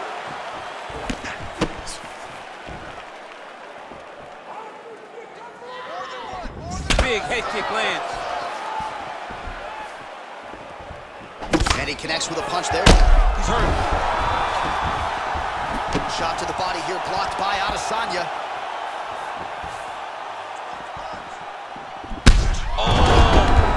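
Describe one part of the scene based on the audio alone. Punches and kicks land on a body with heavy thuds.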